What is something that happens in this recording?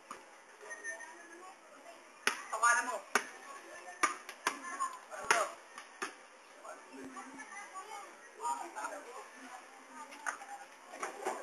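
Young boys shout and call out to each other outdoors.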